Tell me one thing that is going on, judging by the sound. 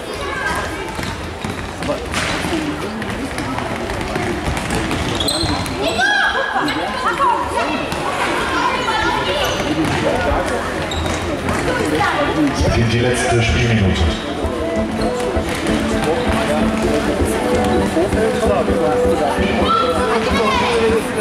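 Sneakers squeak on a hall floor.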